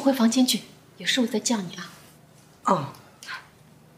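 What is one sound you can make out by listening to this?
A young woman speaks brightly.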